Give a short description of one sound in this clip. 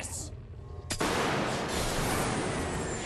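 A revolver fires a loud shot.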